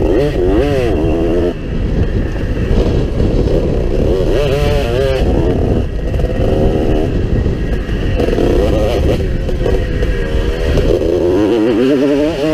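Wind rushes past a close microphone.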